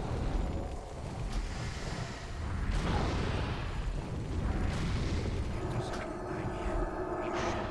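Magic spells burst and whoosh during a battle.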